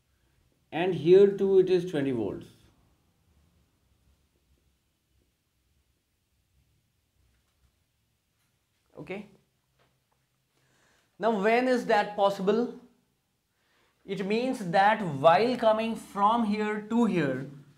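A middle-aged man speaks calmly into a clip-on microphone, explaining in pauses.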